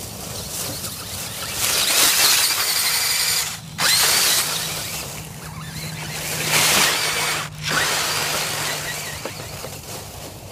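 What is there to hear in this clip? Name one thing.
A small electric motor whines loudly as it races past close by.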